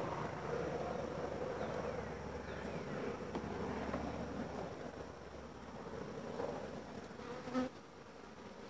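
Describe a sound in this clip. A metal tool scrapes and pries at wooden frames.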